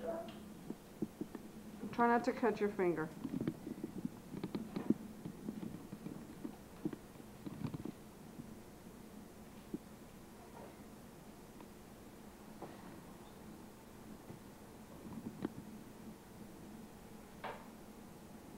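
Small objects knock and clatter on a counter.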